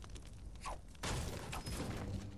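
A pickaxe strikes wood with loud thuds.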